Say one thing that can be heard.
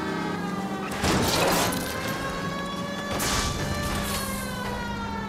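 A car crashes with a loud metal bang.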